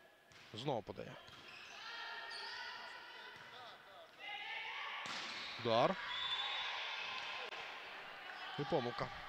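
A crowd in an echoing indoor hall cheers and shouts during a rally.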